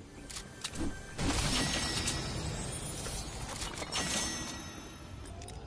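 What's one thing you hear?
A treasure chest bursts open with a bright, shimmering chime.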